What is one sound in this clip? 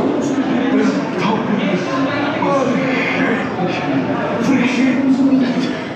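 A man's voice speaks slowly and dramatically through a loudspeaker.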